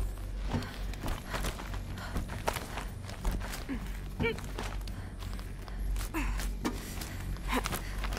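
Hands and feet knock and scrape against rock while climbing.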